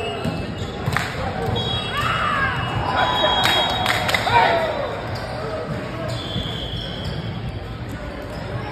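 Young men and women talk and call out nearby in a large echoing hall.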